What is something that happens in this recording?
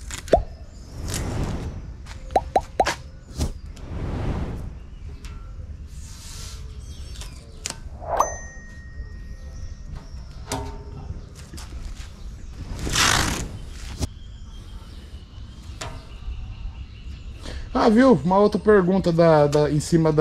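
A metal tape measure clicks and rattles.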